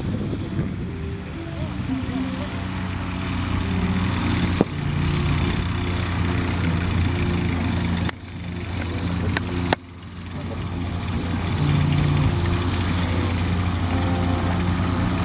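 A small aircraft engine drones loudly and steadily nearby.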